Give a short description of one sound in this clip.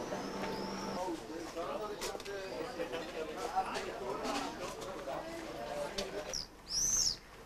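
Men and women talk nearby.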